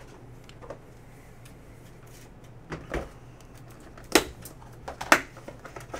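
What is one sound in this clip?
Plastic wrap crinkles as hands handle a box.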